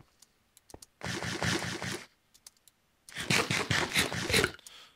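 Quick crunchy chewing sounds repeat in bursts.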